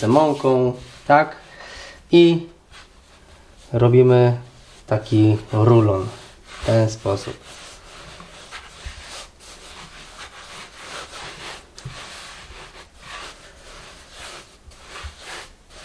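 Dough is kneaded and rolled on a wooden board with soft thuds and rubbing.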